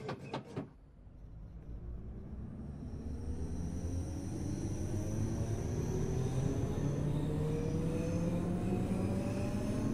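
Train wheels rumble and clatter over the rails.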